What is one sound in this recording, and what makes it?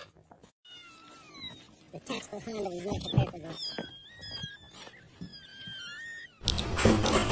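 Kittens mew in high, thin voices.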